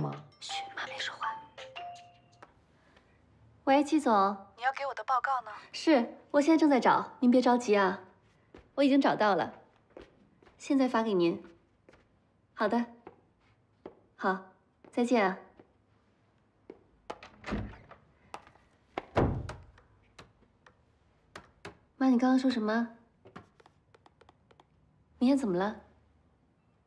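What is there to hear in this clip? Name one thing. A young woman talks cheerfully on a phone, close by.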